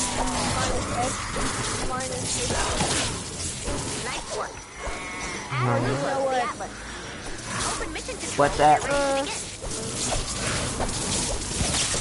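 Weapon blows land with sharp, repeated hits.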